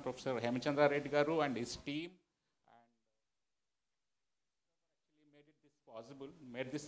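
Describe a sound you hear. A man speaks into a microphone, addressing an audience in a calm, steady voice.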